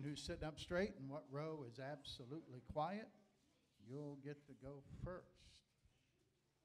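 A man speaks with animation through a microphone and loudspeakers in an echoing hall.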